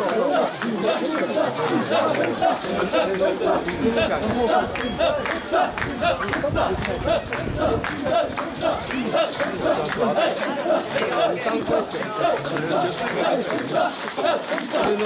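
A crowd of men chant loudly in rhythm close by.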